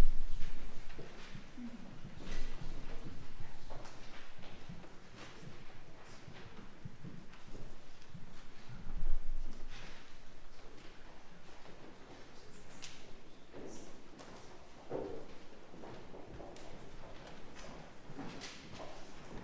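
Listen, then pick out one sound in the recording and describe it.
Footsteps shuffle across the floor of an echoing hall.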